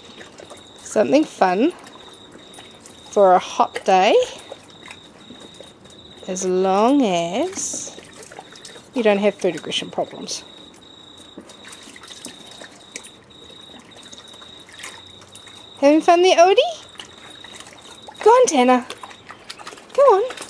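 A dog whines and yelps in short bursts.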